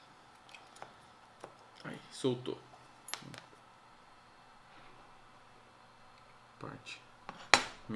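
Small metal parts click and clatter as they are handled.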